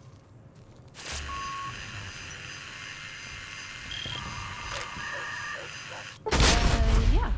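A high electronic hum rings out as energy beams strike down.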